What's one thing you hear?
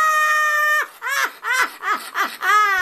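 An elderly woman laughs in loud bursts, close by.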